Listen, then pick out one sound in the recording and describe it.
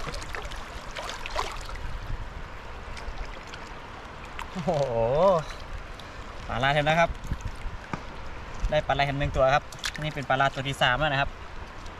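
River water flows and swirls around a wading man.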